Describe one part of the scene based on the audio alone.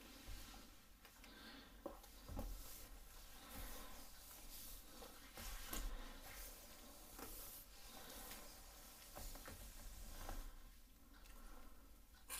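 A comb brushes through hair.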